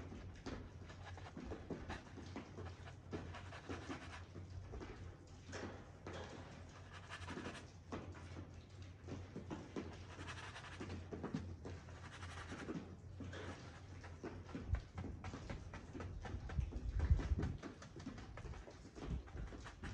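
A bristle brush scrapes and swishes across a canvas.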